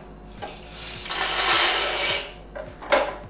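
Popcorn kernels rattle as they are poured.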